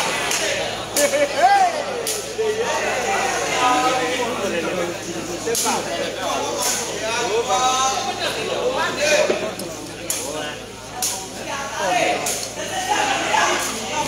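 A rattan takraw ball is kicked with sharp smacks.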